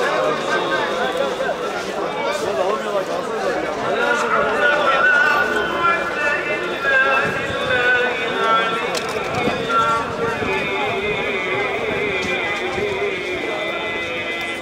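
A large crowd of men and women chatters and murmurs outdoors.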